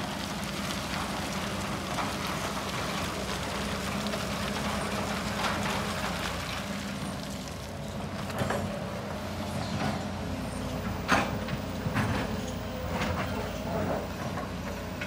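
Excavator engines rumble steadily.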